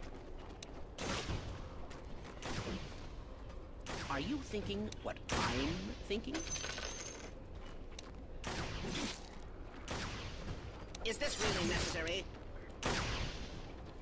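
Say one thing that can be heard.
Game weapons clash and strike repeatedly.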